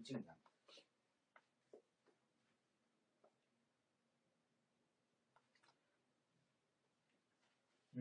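Paper rustles softly as it is handled close by.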